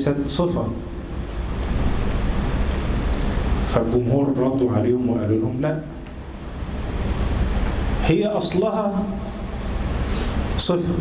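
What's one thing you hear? A man speaks calmly into a microphone in a measured, chanting voice.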